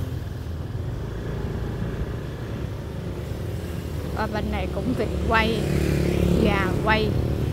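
Traffic rumbles along a city street.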